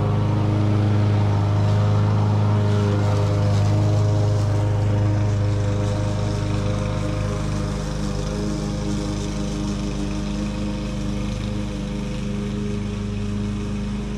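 A lawn mower engine drones steadily nearby and slowly grows a little fainter.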